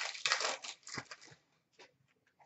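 Foil card packs rustle and crinkle as hands tear them open.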